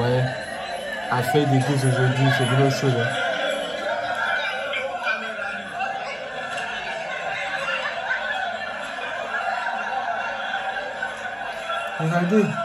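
A crowd chatters and shouts loudly, heard through a small laptop speaker.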